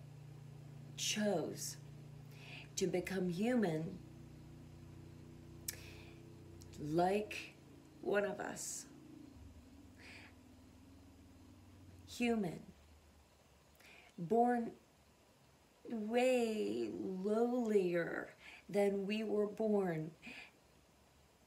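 A middle-aged woman speaks close to the microphone, emotionally and in short bursts.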